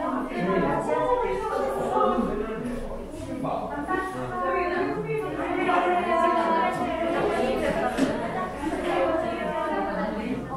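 Several young women and men chat together in a room with some echo.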